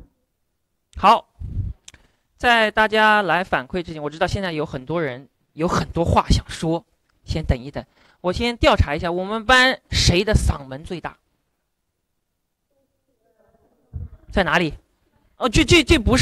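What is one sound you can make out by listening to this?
A man speaks through a microphone in a loud, lively voice.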